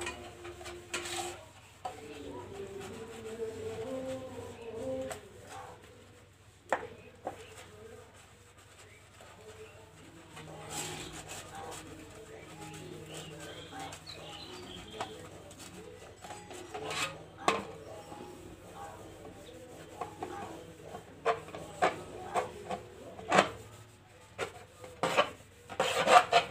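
Water splashes as dishes are rinsed.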